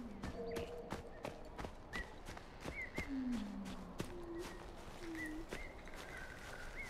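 Footsteps swish steadily through tall grass.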